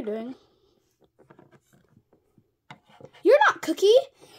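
A small plastic toy taps down on a hard surface.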